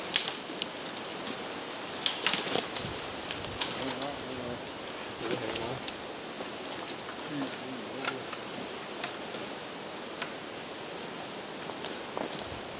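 Wooden poles knock and clack together.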